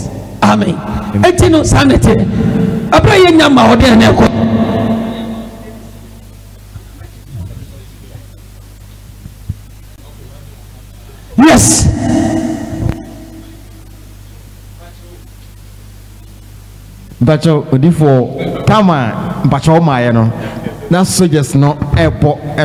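A man speaks with animation into a microphone, echoing through loudspeakers.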